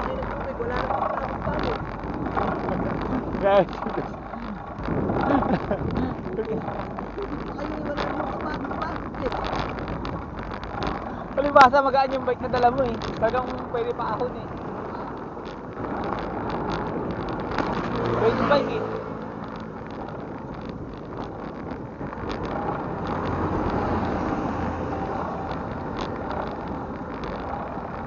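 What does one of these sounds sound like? Wind buffets a moving bicycle.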